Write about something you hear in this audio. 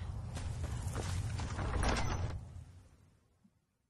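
A heavy stone door grinds open.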